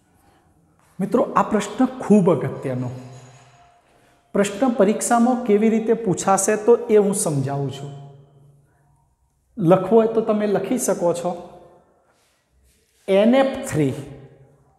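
A middle-aged man speaks clearly and steadily, as if explaining a lesson.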